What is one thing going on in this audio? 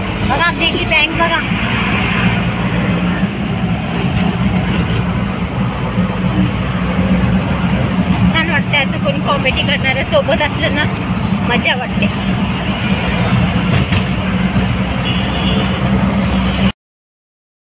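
An auto-rickshaw engine drones and rattles steadily.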